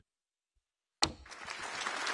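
A snooker cue strikes the cue ball with a sharp click.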